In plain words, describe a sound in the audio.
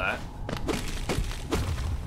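A blade swishes through the air in a quick slash.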